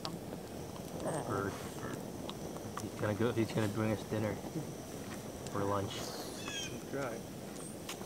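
A man speaks calmly outdoors, a few steps away.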